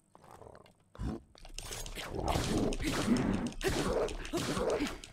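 Weapons clash loudly in a fight.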